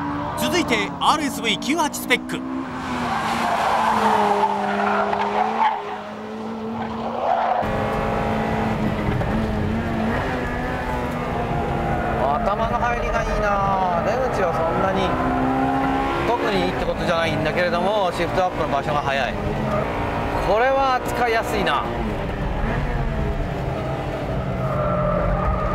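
A car engine roars and revs up and down as the car speeds around a track.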